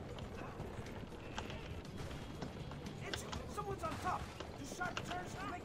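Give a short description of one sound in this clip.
Carriage wheels rumble over rough ground.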